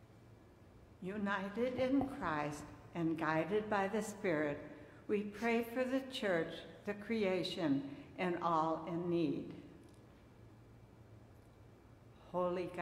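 An older woman speaks calmly through a microphone in a large room.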